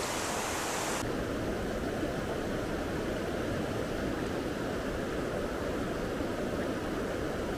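A river flows and gurgles softly over stones.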